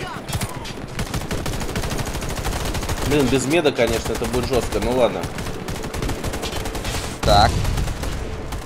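Rapid bursts of gunfire crackle close by.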